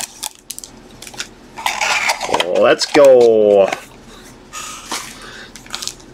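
Foil card wrappers crinkle and tear close by.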